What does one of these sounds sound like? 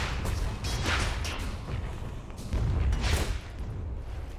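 Loud magical blasts and impacts burst out during a fight.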